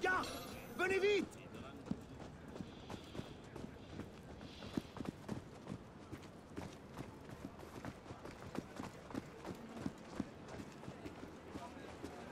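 Footsteps run over cobblestones.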